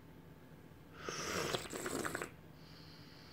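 A man slurps tea loudly from a small cup.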